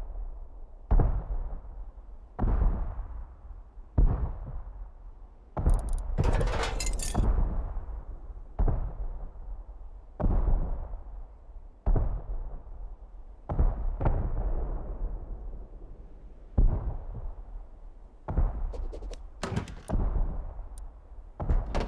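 A hammer bangs repeatedly on metal walls, with a short ringing echo after each blow.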